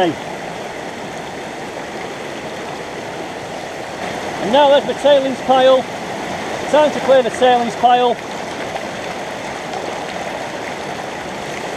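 Water splashes as gravel is poured into a sluice.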